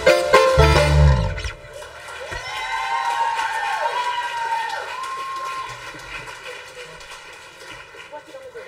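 A live band plays music.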